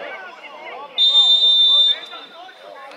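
A referee's whistle blows a sharp short blast.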